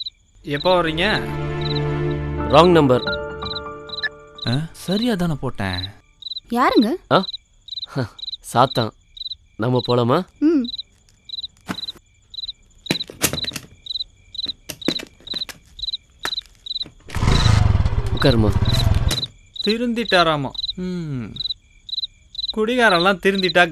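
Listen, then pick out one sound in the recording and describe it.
A man speaks on a phone with emotion, close by.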